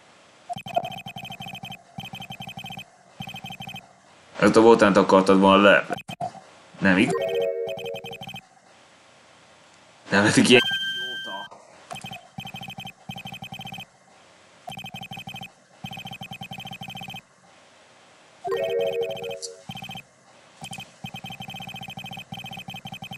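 Rapid electronic blips chatter as game text scrolls.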